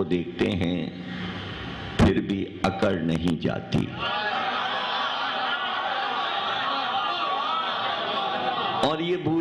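A man recites with feeling into a microphone, heard through loudspeakers in an echoing hall.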